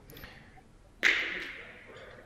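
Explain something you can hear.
Metal balls clack together sharply in a large echoing hall.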